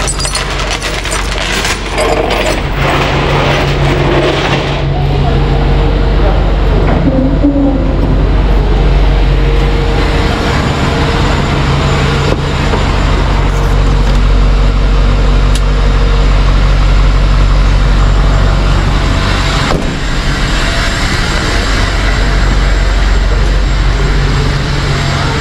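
A truck engine idles with a steady low rumble, echoing in a tunnel.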